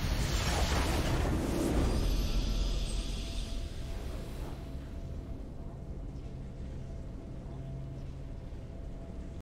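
A triumphant game fanfare swells and fades.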